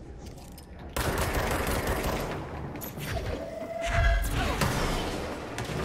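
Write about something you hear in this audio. Debris crashes and clatters.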